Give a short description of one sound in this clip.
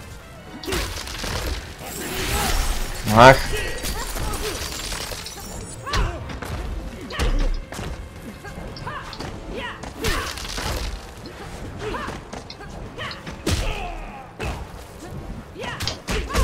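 Fighters grunt and cry out as they strike and are hit.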